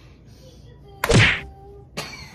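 A flour tortilla slaps against a man's face.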